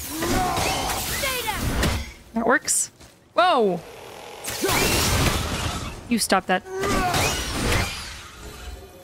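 Loud game combat clashes and whooshes.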